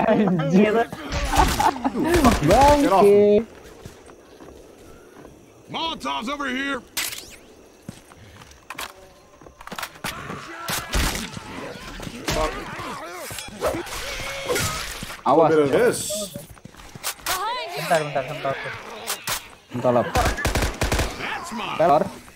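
A gun fires in loud, quick bursts.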